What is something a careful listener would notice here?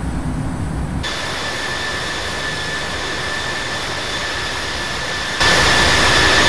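A jet airliner roars steadily as it flies past.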